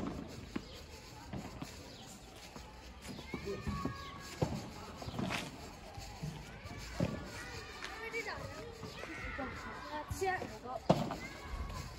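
Padel rackets strike a ball with sharp pops, echoing off glass walls.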